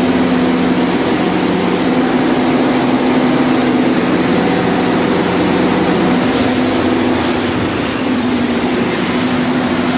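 Electrical equipment hums steadily with a loud, noisy drone.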